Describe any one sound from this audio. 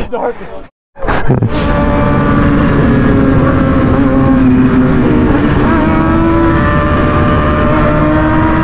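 A motorcycle engine roars and climbs in pitch as it speeds up.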